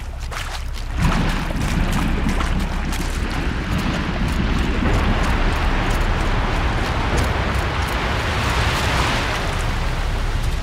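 Wind blows hard and gusts.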